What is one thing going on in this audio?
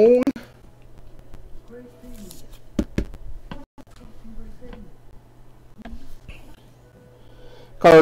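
A stiff plastic card holder taps and rattles as hands handle it.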